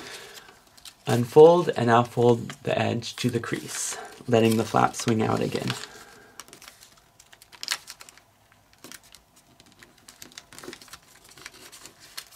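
Paper crinkles and rustles as it is folded and creased.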